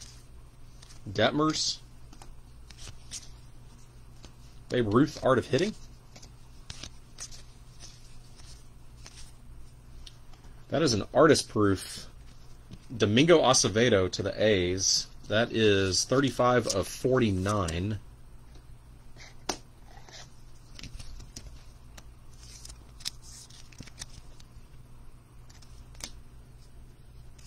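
Stiff cards rustle and slide against each other as hands flip through them.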